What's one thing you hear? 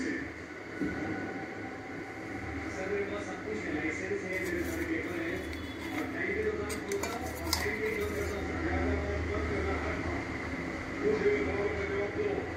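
A metal spoon scrapes and taps against a ceramic bowl.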